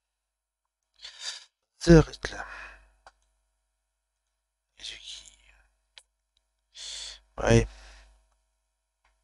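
A middle-aged man speaks casually into a close microphone, in short bursts.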